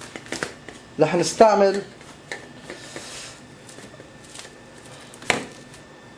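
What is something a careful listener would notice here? Plastic cling film crinkles as hands fold it.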